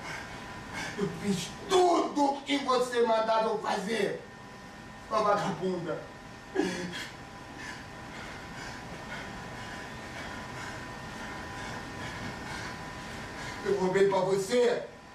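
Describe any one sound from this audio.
A man speaks loudly, heard from a distance in a reverberant room.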